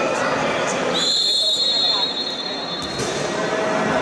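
A referee blows a long whistle in a large echoing sports hall.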